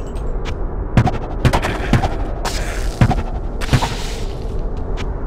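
Blades strike and slash in quick blows.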